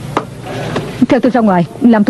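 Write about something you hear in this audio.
A young woman answers calmly, close by.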